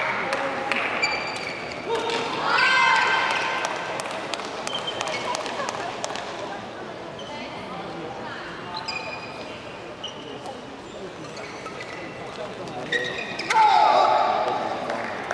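Shoes squeak sharply on a floor in a large echoing hall.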